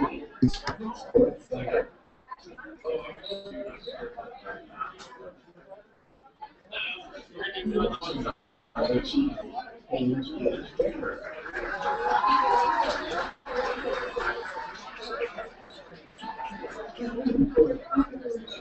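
Men and women chatter at a distance in a large echoing hall.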